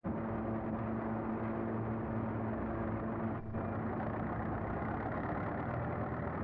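A heavy machine's engine rumbles and drones steadily.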